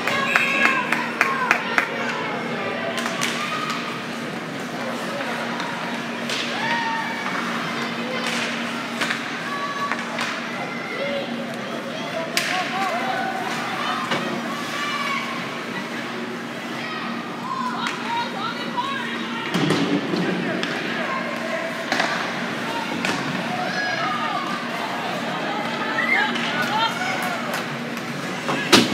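Spectators chatter and call out throughout a large echoing rink.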